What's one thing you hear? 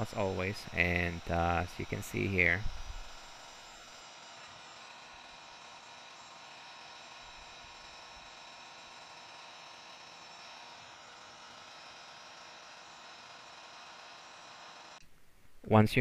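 A heat gun blows with a steady whooshing hum.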